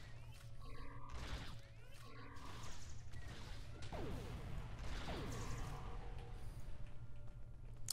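Energy weapons fire in sharp, whining bursts.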